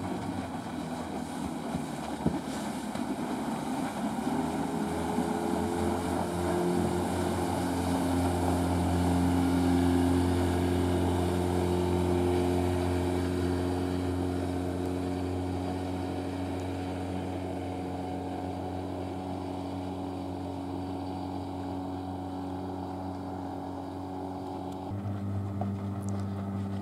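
Water sprays and hisses under a skimming water ski.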